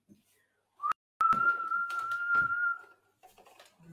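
A young woman whistles a steady high note.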